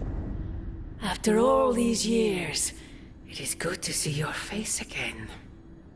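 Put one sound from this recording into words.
A young woman speaks calmly and warmly.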